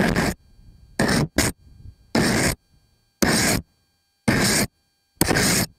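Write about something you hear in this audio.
A sprayer hisses in short, regular bursts.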